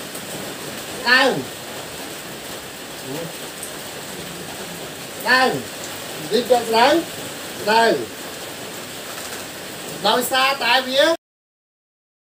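A man speaks loudly and with animation through a microphone, in short phrases with pauses.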